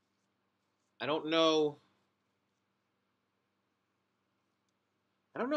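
A man speaks briefly into a nearby microphone.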